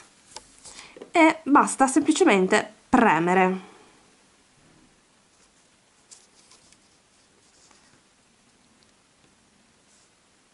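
Fingers press a small metal charm into a soft rubbery mold with faint taps.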